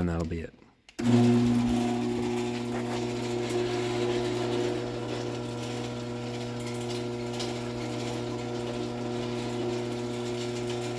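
A garage door opener motor hums steadily.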